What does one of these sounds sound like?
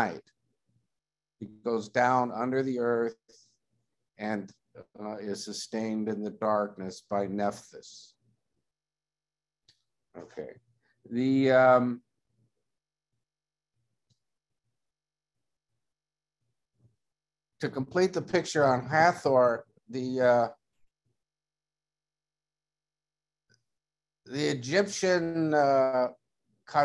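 An older man talks calmly over an online call, with pauses.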